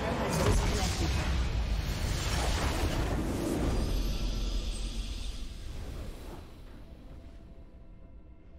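A triumphant game fanfare swells loudly and then fades.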